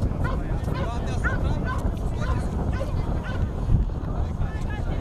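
A crowd of men and women chatter at a distance.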